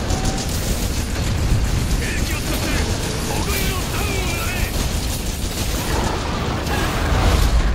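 A huge beast roars.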